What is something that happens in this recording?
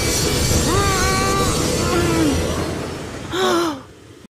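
A steam engine chugs past.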